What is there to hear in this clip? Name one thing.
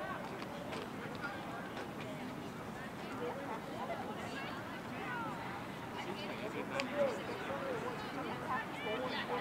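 Young women call out and shout to each other across an open field outdoors.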